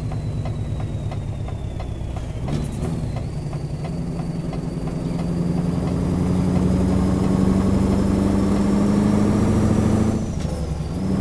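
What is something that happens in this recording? A truck engine hums steadily, rising in pitch as it speeds up and dropping near the end.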